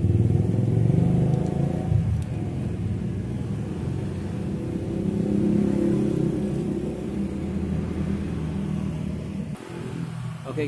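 A motorcycle engine idles with a low, steady exhaust rumble close by, then cuts out.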